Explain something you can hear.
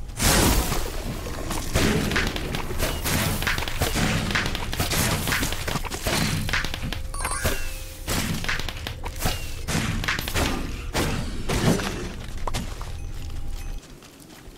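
Fireworks bang and crackle repeatedly.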